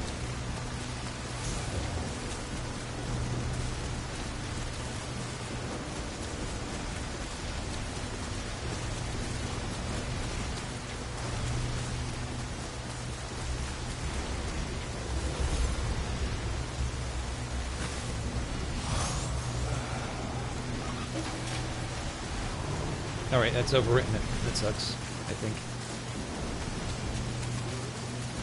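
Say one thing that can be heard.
Steady rain pours down.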